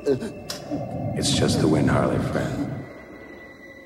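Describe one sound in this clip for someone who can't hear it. A man groans in pain.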